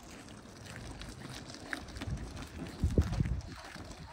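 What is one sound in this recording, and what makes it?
Small wheels roll over rough asphalt.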